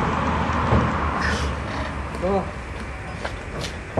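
A truck door clunks.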